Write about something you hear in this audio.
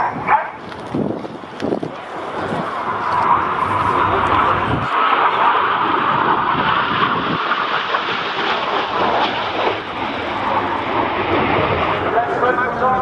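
A jet engine roars loudly as a jet flies past overhead.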